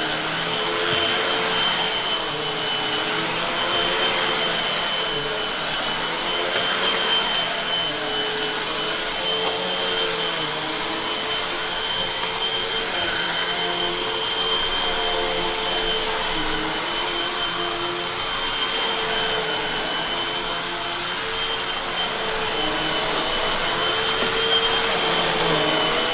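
An upright vacuum cleaner whirs steadily as it is pushed back and forth over carpet.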